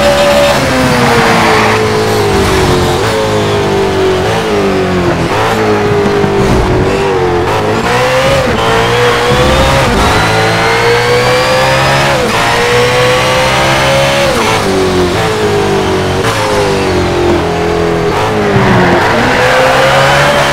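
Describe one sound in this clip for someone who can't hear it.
Tyres screech through corners.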